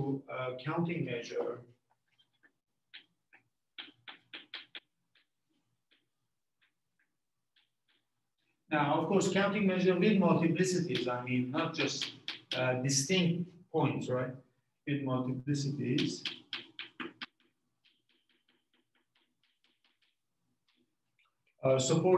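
A man lectures calmly into a nearby microphone.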